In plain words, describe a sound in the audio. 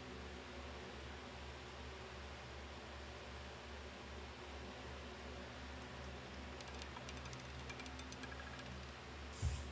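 A roulette ball rolls and clatters around a spinning wheel.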